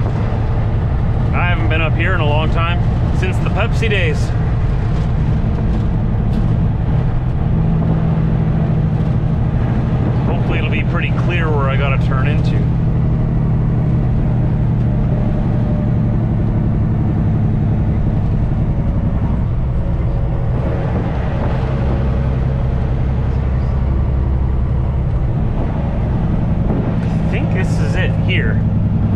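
Tyres hum on the road at speed.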